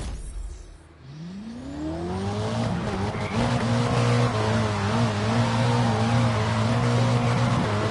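A car engine revs up, rising in pitch after slowing down.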